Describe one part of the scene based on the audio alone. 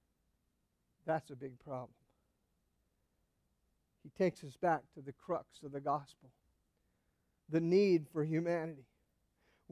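A man speaks calmly to an audience through a microphone, pausing between phrases.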